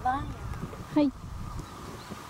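A golf club strikes a ball with a crisp click.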